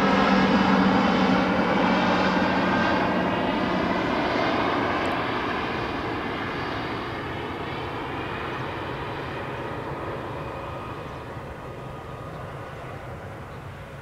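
A jet airliner roars overhead with a whining engine hum, slowly fading as it moves away.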